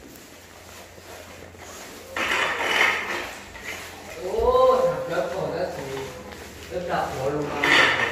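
A pole scrapes along a gritty floor.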